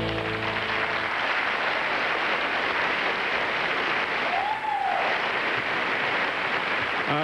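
A large crowd applauds and cheers loudly throughout.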